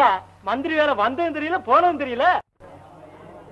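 A woman sings in a high voice.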